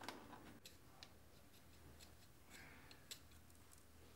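Small pliers snip and click softly.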